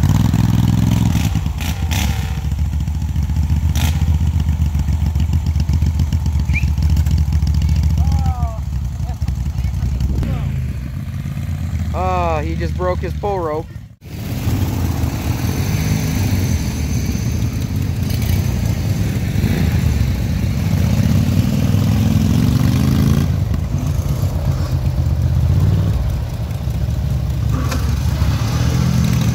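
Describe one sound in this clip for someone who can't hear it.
Small engines rumble and rev steadily nearby.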